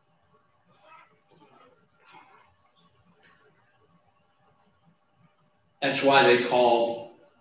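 An elderly man speaks through a microphone, softly at first and then loudly.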